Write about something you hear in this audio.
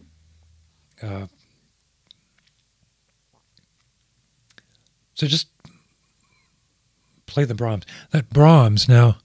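A middle-aged man speaks close to a microphone, in short bursts with pauses.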